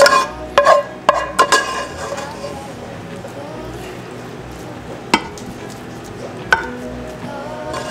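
A wooden spoon scrapes and taps against a ceramic dish.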